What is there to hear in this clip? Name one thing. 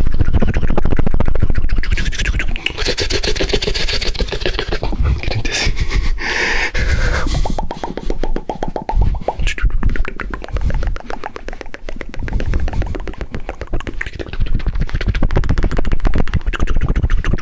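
A man whispers and murmurs softly, very close to a microphone.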